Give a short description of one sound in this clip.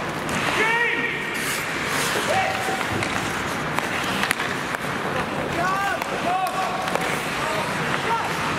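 Players shout to each other across an echoing rink.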